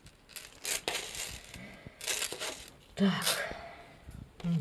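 Plastic packaging rustles and crinkles under a hand.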